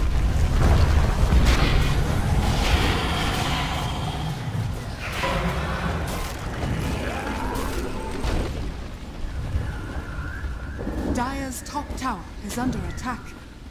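Swords clash and spells burst in a fast fight.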